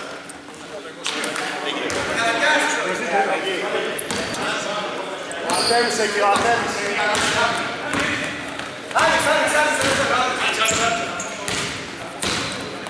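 Men call out to each other across the echoing gym.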